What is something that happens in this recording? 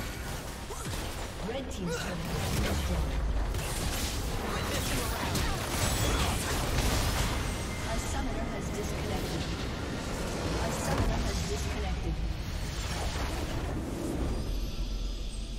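Game spells crackle and explode in a busy battle.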